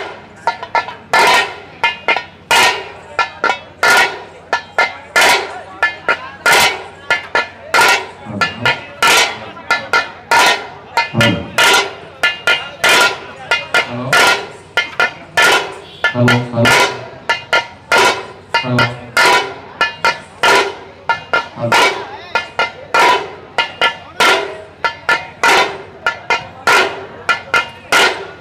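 Drums beat loudly in a fast, steady rhythm.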